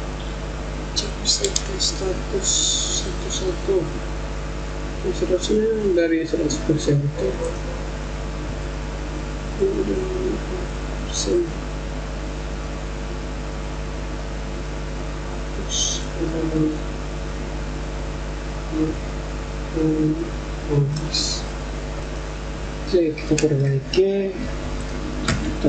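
A young man speaks calmly into a computer microphone, with pauses.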